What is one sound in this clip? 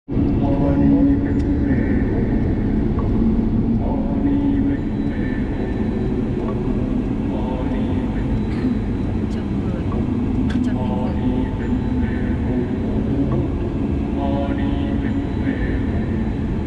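A car engine hums steadily from inside as the car drives.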